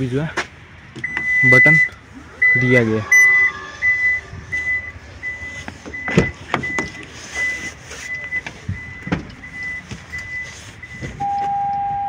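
A car's warning chime beeps over and over, then stops.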